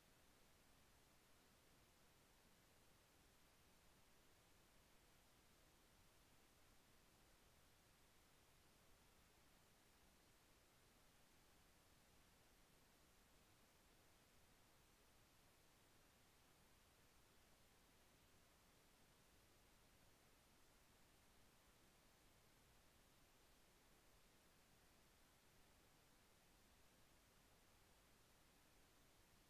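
Television static hisses steadily and faintly.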